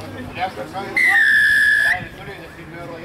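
A referee's whistle blows one long blast.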